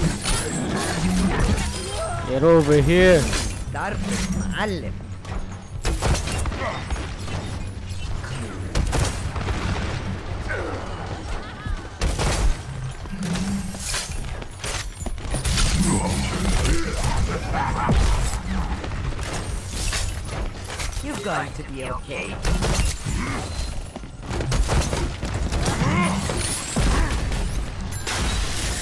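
Explosions boom and crackle repeatedly.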